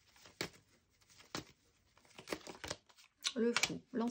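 A card is set down on a wooden table.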